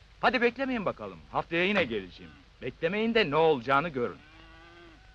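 An elderly man speaks loudly and emphatically nearby.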